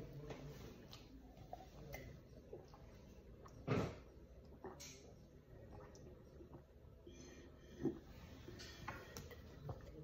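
A toddler gulps water from a glass.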